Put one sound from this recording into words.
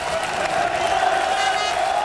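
Players clap their hands above their heads.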